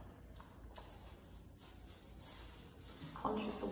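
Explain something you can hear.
A paint roller rolls softly across a wall.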